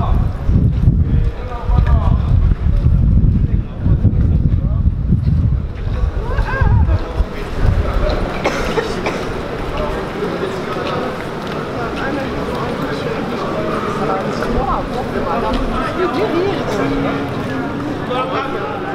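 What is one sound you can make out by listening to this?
Heavy boots tramp on pavement as a group marches past.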